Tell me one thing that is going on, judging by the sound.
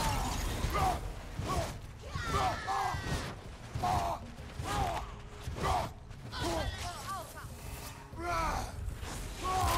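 Blows and crashes of a fight thud and burst.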